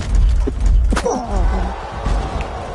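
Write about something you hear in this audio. A short bright jingle sounds.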